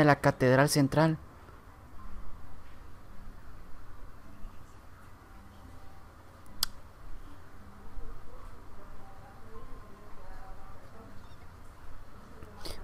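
A young man speaks into a microphone, calmly and close up.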